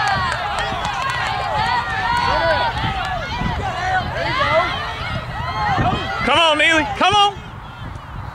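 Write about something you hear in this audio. A crowd of women and children shouts and cheers excitedly nearby, outdoors.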